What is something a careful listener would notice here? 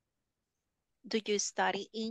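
A woman speaks clearly through an online call.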